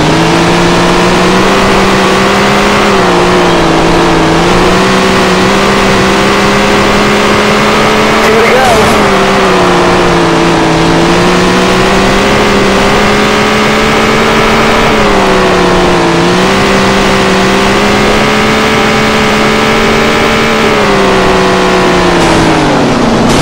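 A race car engine roars loudly, its pitch rising and dipping again and again.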